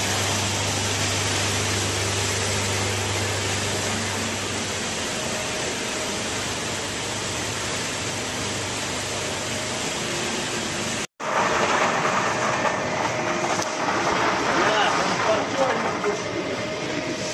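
Machinery whirs and rumbles with a steady drone.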